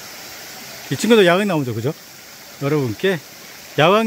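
A small stream trickles over rocks nearby.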